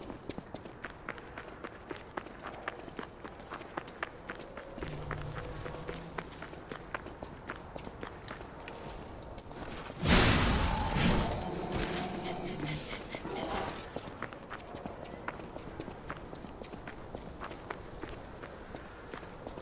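Footsteps crunch steadily on gravel and wooden planks.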